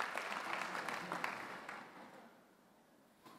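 An audience applauds in a large hall, then the clapping fades.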